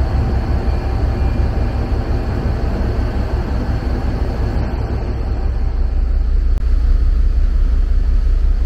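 Water rushes and splashes along a boat's hull.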